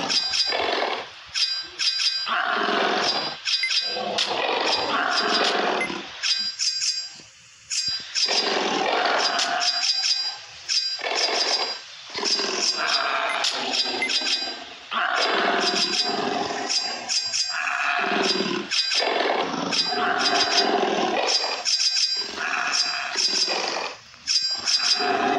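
A large creature's footsteps patter quickly.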